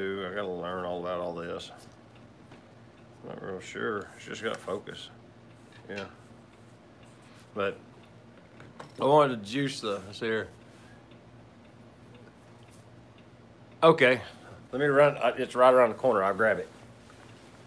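A middle-aged man speaks calmly and close by, in short bursts.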